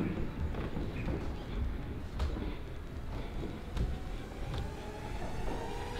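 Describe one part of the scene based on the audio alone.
Footsteps climb carpeted stairs.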